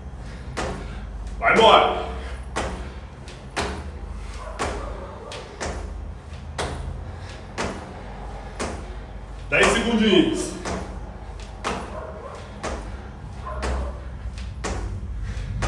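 Sneakers thump and scuff on a tile floor.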